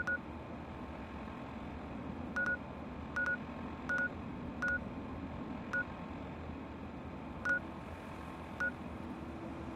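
Short electronic beeps sound as a handheld device's map is scrolled.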